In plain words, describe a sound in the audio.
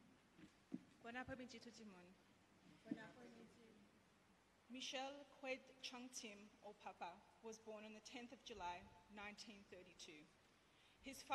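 A woman speaks calmly into a microphone, heard through a loudspeaker in an echoing room.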